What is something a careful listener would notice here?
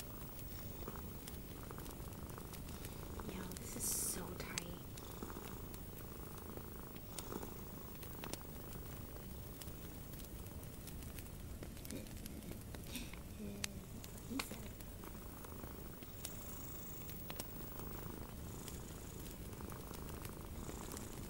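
Fingernails tap and click on a small metal object close up.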